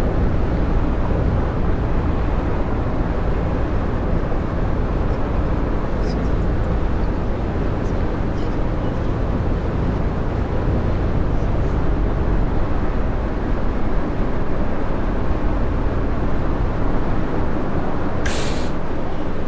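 A heavy engine hums steadily as a bus drives along.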